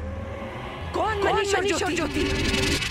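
A woman snarls and shouts angrily.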